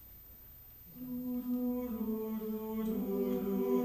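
A choir of men and women begins singing in a large echoing hall.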